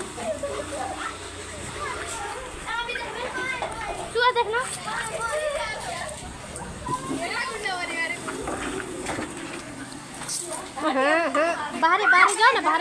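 Young people shout and call out excitedly nearby, outdoors.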